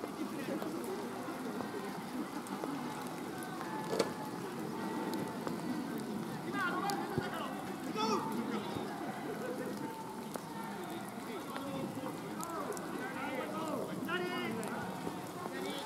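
A crowd of spectators chatters in the distance.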